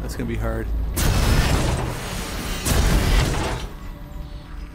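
A weapon fires with a loud roaring blast.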